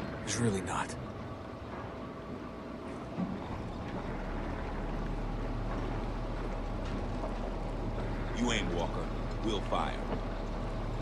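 A man speaks in a low, tense voice, close by.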